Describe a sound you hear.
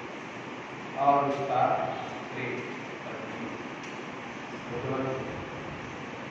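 A middle-aged man speaks slowly and calmly through a microphone and loudspeakers in an echoing hall.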